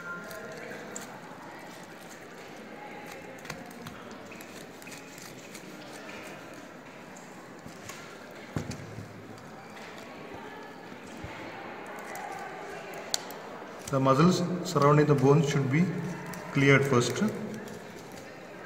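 Small metal scissors snip through tough tissue.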